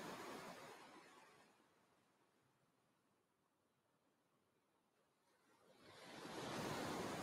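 Waves wash onto a beach, swelling and fading.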